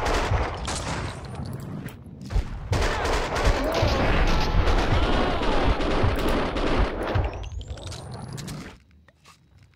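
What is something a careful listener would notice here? Gunshots fire rapidly and echo in a loud burst.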